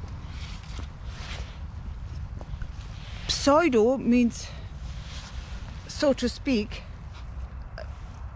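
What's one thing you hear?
Dry leaves rustle and crackle in a woman's hands.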